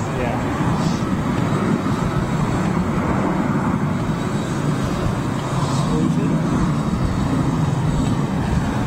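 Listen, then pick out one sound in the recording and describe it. A large jet airliner's engines rumble and roar steadily as it taxis.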